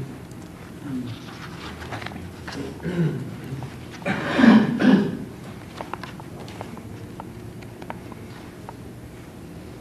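Pages of a book rustle and turn.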